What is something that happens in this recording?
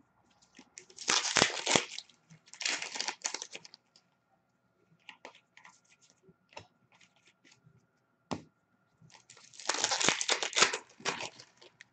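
Plastic wrapping crinkles and rustles in bursts, close by.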